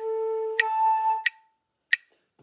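A flute plays a few short notes up close.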